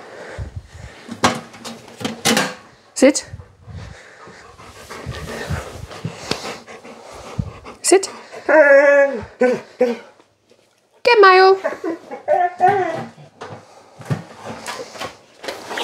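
A dog's claws tap on the floor.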